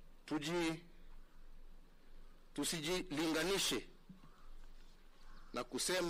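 A middle-aged man speaks calmly and formally into a microphone.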